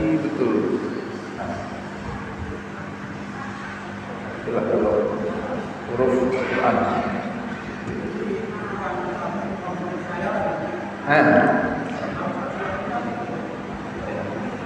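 A man speaks steadily into a microphone, heard through a loudspeaker in an echoing room.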